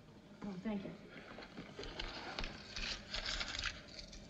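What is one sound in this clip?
Paper rustles as a package is handled.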